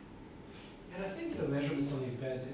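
A young woman speaks casually nearby.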